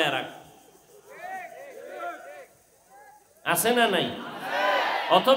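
A man preaches into a microphone with animation, heard through loudspeakers.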